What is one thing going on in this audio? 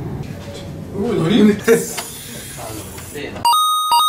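A young man makes a long whooshing noise with his voice.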